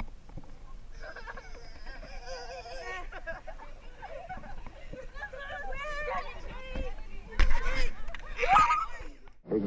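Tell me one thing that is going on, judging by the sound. Children talk and shout excitedly outdoors.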